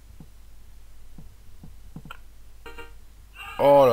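A cricket bat knocks a ball.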